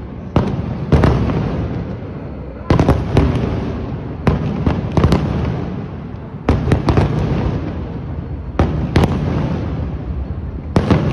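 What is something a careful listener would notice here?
Fireworks burst with loud booms and crackles, echoing outdoors.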